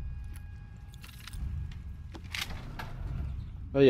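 A heavy wooden door rattles and swings open.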